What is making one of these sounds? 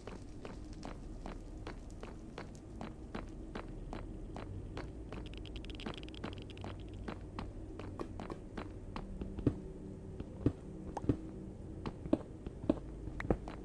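Footsteps tap steadily on a hard stone floor.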